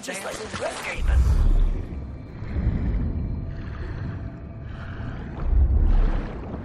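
A muffled underwater rumble swells and fades in bursts.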